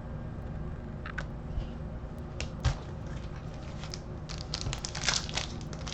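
Trading cards rustle and slap as hands sort them.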